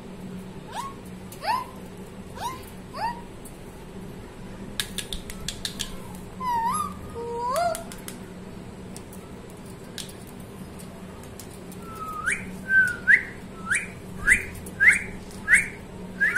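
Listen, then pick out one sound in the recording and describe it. A parrot gives short rising squawks, close by.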